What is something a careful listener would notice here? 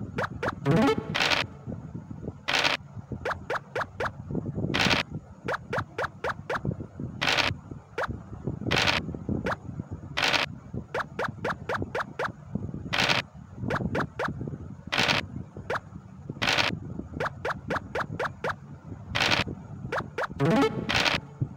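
Game pieces click as they hop from square to square.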